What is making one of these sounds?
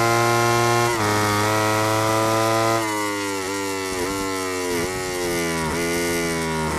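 A motorcycle engine shifts gears with sudden drops in pitch.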